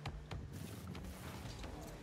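A ball is struck with a hollow thump.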